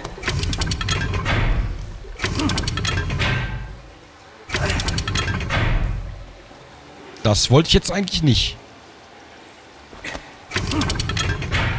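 Metal pipe joints clank as they turn.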